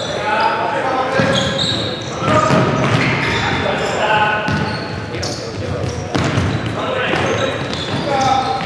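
A futsal ball thuds as it is kicked.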